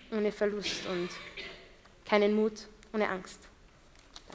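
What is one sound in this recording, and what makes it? A young woman speaks with feeling into a microphone.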